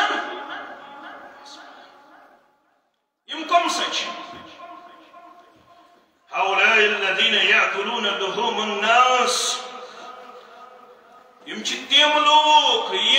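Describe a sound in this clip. A middle-aged man preaches forcefully through a microphone in an echoing room.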